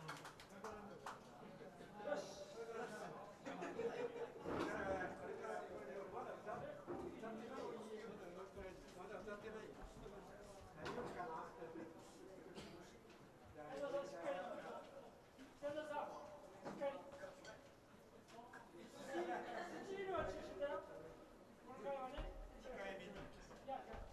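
An elderly man talks casually through a microphone.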